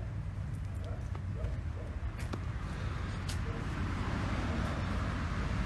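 Leaves and twigs rustle and snap close by.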